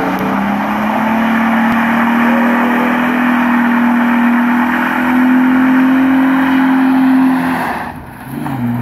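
A car engine revs hard and roars close by.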